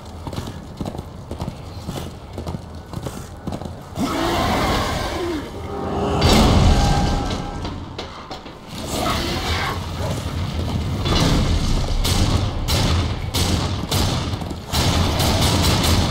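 A horse gallops, its hooves pounding on dirt ground.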